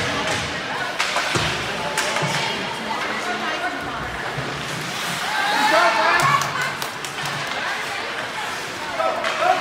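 Hockey sticks click against a puck.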